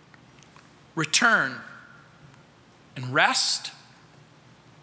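A middle-aged man speaks with emphasis through a microphone, in short phrases with pauses, in a large room.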